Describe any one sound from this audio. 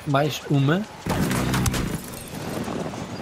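A heavy machine gun fires in a rapid burst.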